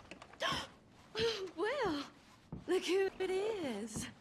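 A woman speaks in a teasing, lively voice close by.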